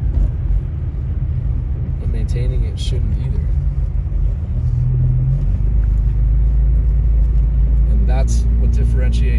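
Wind roars around a moving car.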